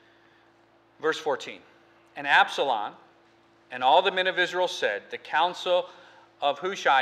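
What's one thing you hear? A middle-aged man speaks calmly through a microphone in a large room.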